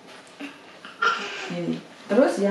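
A young girl laughs and squeals.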